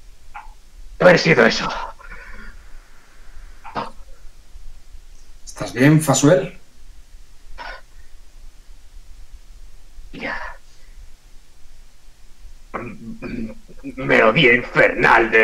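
Several men talk in short bursts over an online call.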